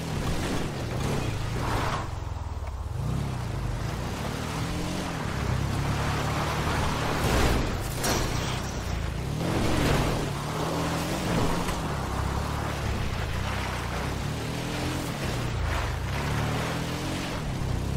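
Tyres rumble and crunch over rough dirt.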